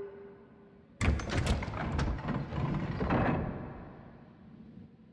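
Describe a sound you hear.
A heavy mechanism rumbles and slides open.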